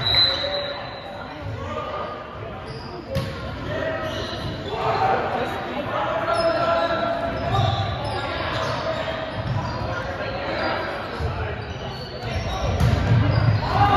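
A crowd of boys and men chatters in a large echoing gym.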